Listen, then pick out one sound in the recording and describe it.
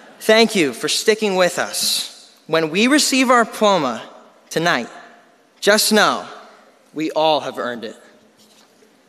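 A young man speaks with animation into a microphone, echoing through a large hall.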